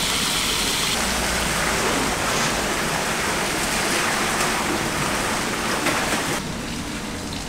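Water pours in a heavy stream from a large tilted kettle.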